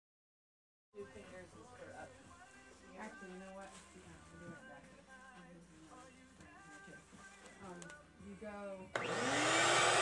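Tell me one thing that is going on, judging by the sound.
Plastic sheeting crinkles and rustles under hands.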